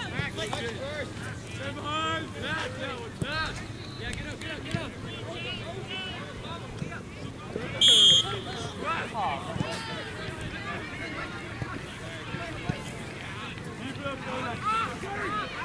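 Men shout and call out across an open field during a game.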